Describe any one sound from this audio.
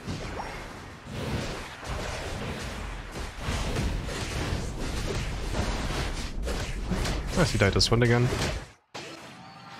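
Game battle effects crackle and burst in quick succession.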